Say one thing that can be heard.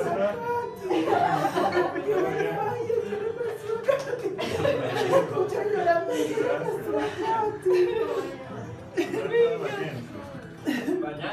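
Men and women talk excitedly close by.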